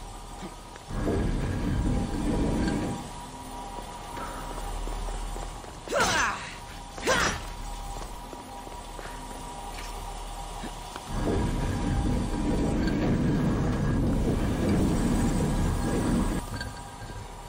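A heavy stone mechanism grinds as it turns.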